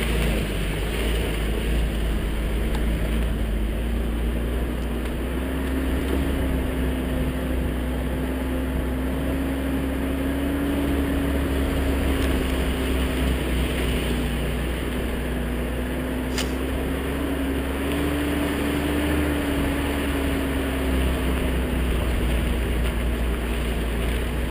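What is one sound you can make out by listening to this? Tyres crunch and rumble over snow and a dirt track.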